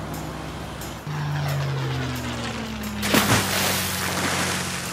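A small propeller plane engine drones and slows.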